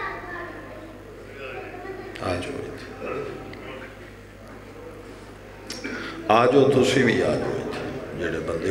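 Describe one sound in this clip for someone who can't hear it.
A man speaks forcefully into a microphone through loudspeakers, in an echoing room.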